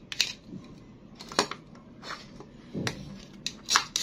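Plastic toy food pieces knock together as they are pulled apart.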